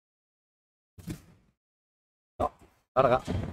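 A padel ball is struck with a paddle.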